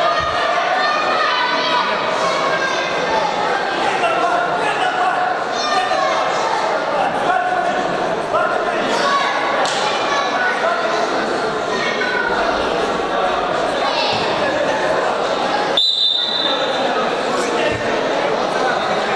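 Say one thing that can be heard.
A crowd of spectators talks and calls out in an echoing hall.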